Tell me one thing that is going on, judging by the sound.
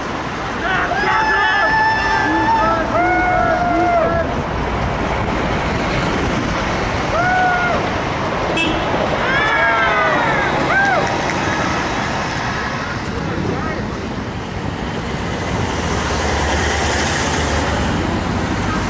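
Traffic rumbles steadily along a city street.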